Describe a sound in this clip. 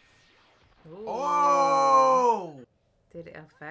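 A young man exclaims loudly close by.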